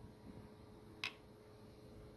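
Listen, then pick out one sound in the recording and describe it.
A metal tape measure clicks as it is pulled out.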